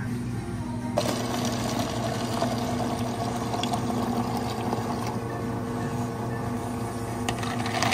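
Water pours into a plastic cup.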